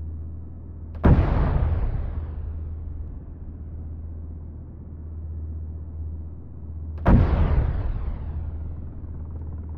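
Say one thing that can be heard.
A heavy tank cannon fires twice with loud booms that echo and fade.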